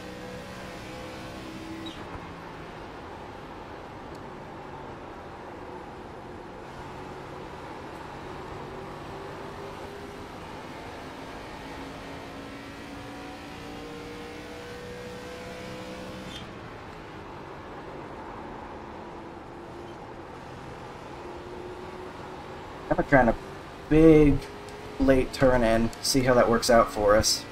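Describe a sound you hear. Other race car engines drone close by.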